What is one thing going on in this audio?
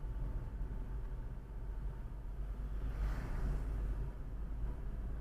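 A bus rushes past close by.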